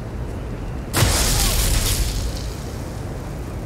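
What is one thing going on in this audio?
A whirling magic blast roars and fades.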